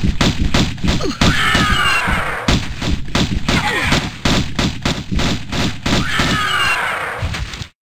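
A large creature screeches and shrieks.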